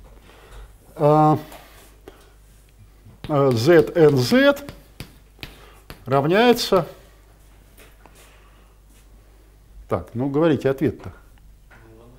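An elderly man speaks in short bursts.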